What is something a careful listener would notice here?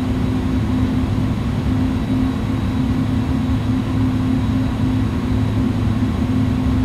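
A steady high whine sounds from the jet engines.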